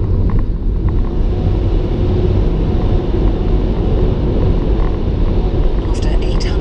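Road noise echoes inside a tunnel.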